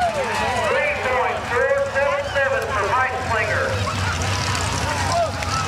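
A crowd of people cheers and shouts outdoors.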